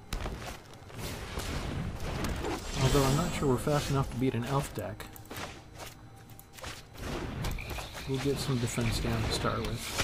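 A magical whoosh and chime sound as a spell is cast in a game.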